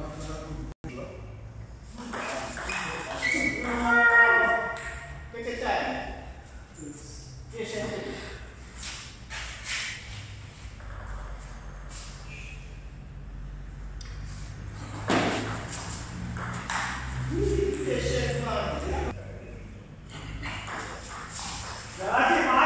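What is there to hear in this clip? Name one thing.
A ping-pong ball clicks back and forth on a table and paddles.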